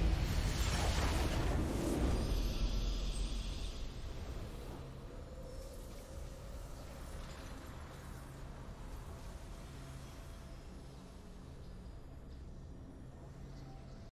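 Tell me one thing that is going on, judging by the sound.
A triumphant fanfare swells and plays on.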